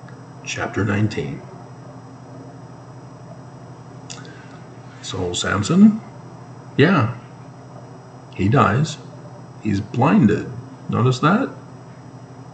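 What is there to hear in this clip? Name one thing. A middle-aged man speaks calmly and close up into a microphone, in short bursts with pauses.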